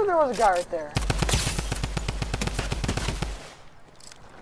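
A machine gun fires a rapid burst of shots.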